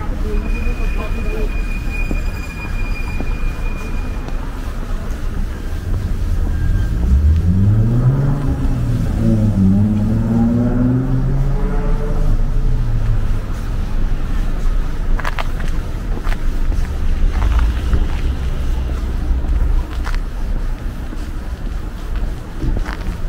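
Traffic rumbles along a nearby street, outdoors.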